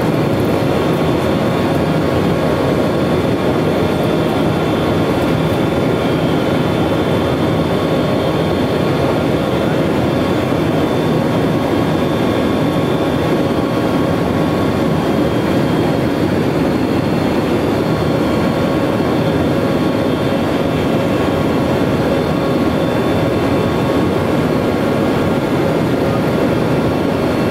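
A loud, steady propeller engine drones inside an aircraft cabin.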